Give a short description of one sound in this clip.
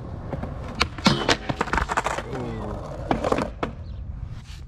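A skateboard clatters onto the ground as a skater falls.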